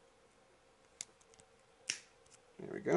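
A hand nipper snips plastic parts with sharp clicks.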